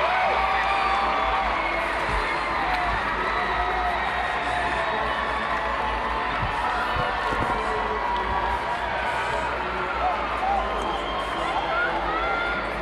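A large crowd cheers and chatters in an echoing arena.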